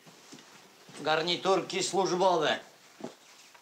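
A second man answers with animation.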